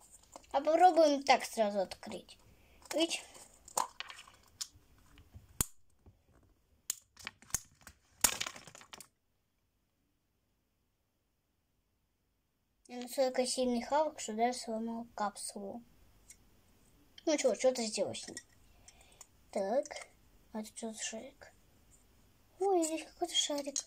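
A young girl talks calmly close by.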